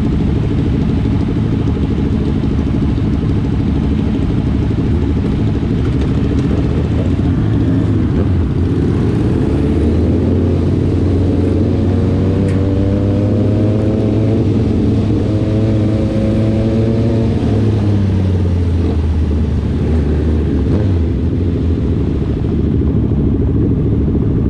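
Wind buffets loudly as the riders move.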